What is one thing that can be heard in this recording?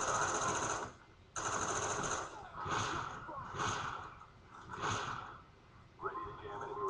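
Gunfire from a video game plays loudly through a television speaker in bursts.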